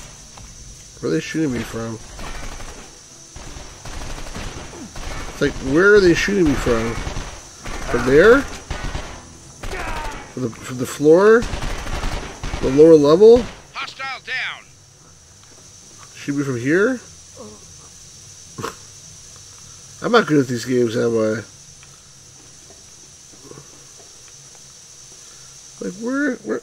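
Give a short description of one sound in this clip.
A middle-aged man talks with animation into a nearby microphone.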